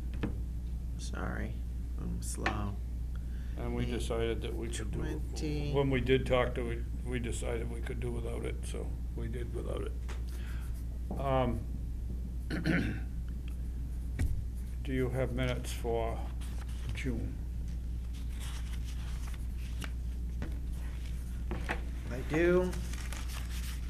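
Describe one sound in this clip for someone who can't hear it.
A man speaks calmly nearby, heard through a table microphone.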